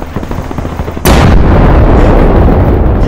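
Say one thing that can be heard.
Heavy twin cannons fire a rapid, roaring burst.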